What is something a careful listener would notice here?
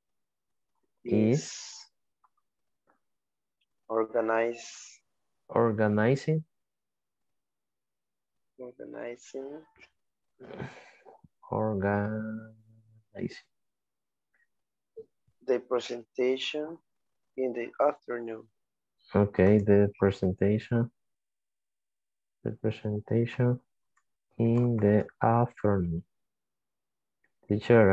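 A man speaks calmly through an online call, pausing between phrases.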